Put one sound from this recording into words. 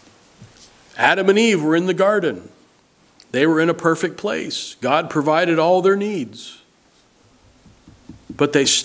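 A middle-aged man speaks slowly and clearly through a microphone, in a room with a slight echo.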